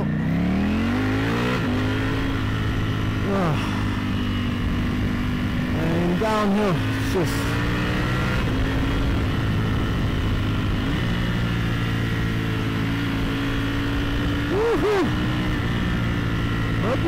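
A motorcycle engine roars close by, revving up and then holding a steady drone.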